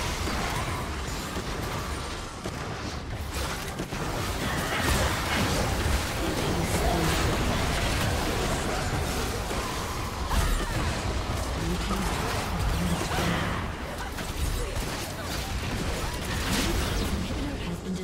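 Spell effects whoosh and crackle in a game fight.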